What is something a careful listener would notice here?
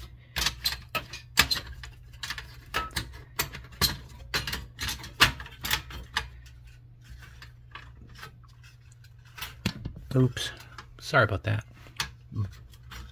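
Gloved hands tap and rub against a metal plate with light clicks and rustles.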